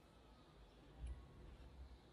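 A hard plastic toy clatters as a hand picks it up.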